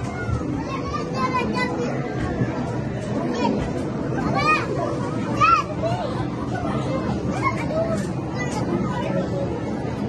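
Young children squeal and call out excitedly nearby.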